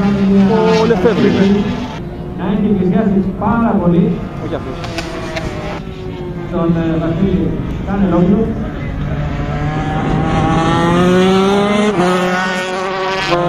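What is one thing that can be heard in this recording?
Motorcycle engines roar and rev as bikes race past, rising and falling in pitch.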